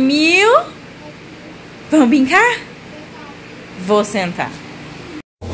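A toddler squeals in a high voice.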